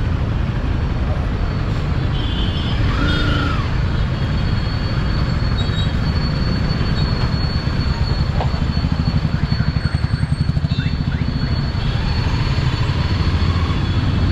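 A motorcycle engine idles and putters up close.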